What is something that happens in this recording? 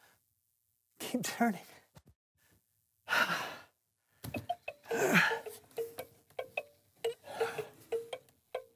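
A man talks with animation.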